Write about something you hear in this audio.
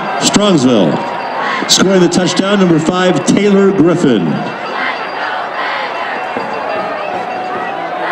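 A crowd cheers and yells in an open-air stadium.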